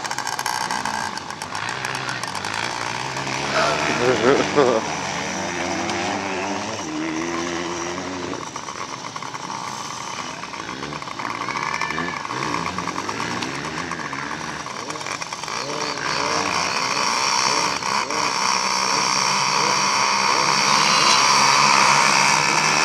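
Small motorbike engines idle and buzz nearby, outdoors.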